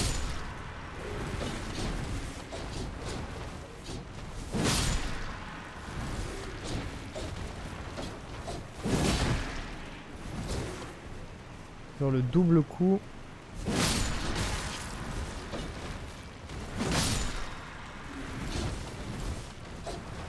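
Blades swing and strike in loud, heavy bursts.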